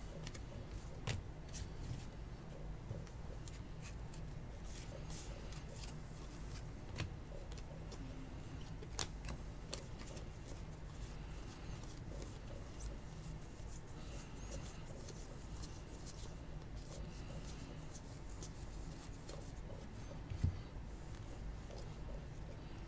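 Trading cards rustle and click as they are shuffled by hand.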